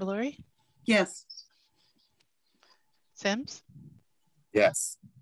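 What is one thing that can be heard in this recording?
A woman speaks calmly in short phrases over an online call.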